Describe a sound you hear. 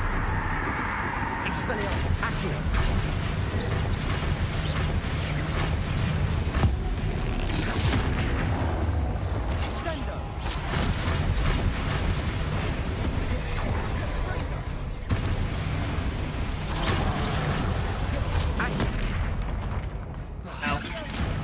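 Magic spells crackle and blast in quick bursts.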